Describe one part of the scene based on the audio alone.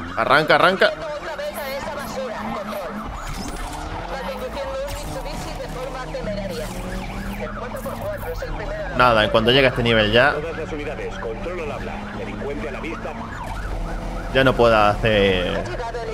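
Police sirens wail in bursts nearby.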